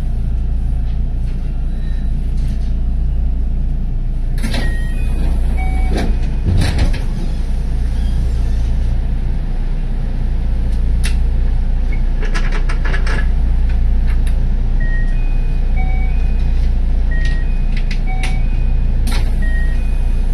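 A stopped train hums low and steadily.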